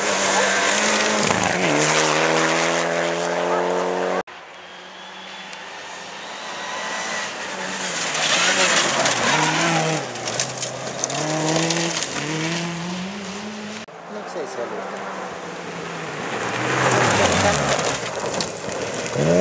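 Gravel crackles and sprays under skidding tyres.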